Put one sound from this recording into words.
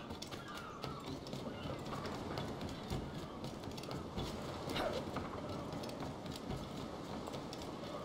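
Footsteps thud quickly across wooden planks.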